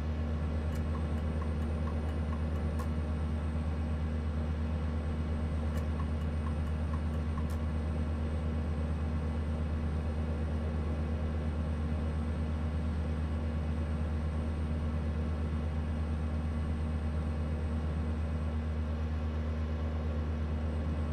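A truck engine hums steadily at cruising speed.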